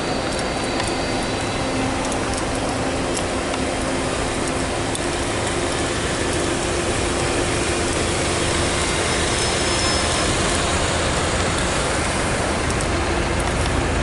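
A bus engine hums as the bus moves slowly past.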